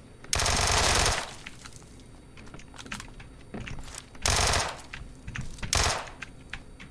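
A rifle fires in short rapid bursts.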